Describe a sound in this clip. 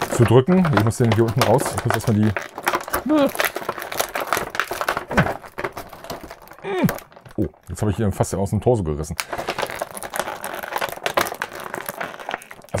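A plastic bag crinkles and rustles in a man's hands.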